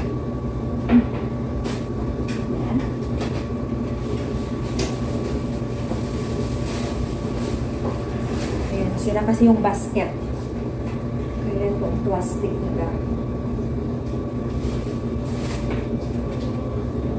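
Laundry machines hum steadily throughout.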